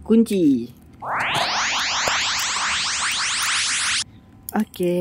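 A small toy train motor whirs, rising quickly in pitch, then stops abruptly.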